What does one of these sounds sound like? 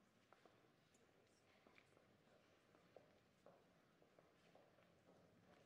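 Footsteps and small knocks sound on a hard floor.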